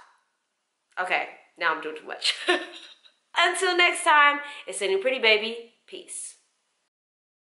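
A young woman talks animatedly and close up.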